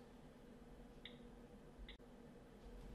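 Fingers tap lightly on a phone's touchscreen keyboard.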